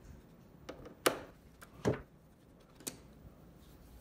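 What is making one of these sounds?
Plastic parts knock and click as they are lifted out of a machine.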